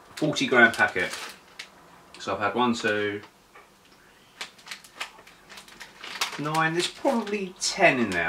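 A crisp packet rustles and crinkles.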